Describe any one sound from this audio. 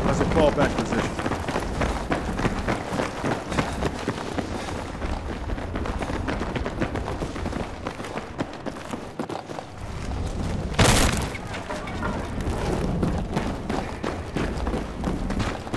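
Boots thud and shuffle on a hard floor.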